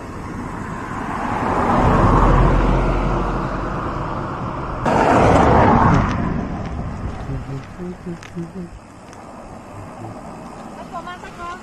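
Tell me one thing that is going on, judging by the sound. Wind rushes and buffets steadily while riding outdoors.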